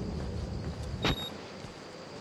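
A heavy metal gate clangs shut.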